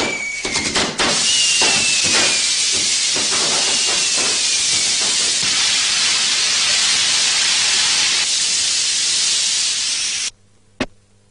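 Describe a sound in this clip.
A burning fuse hisses loudly and steadily, then stops abruptly.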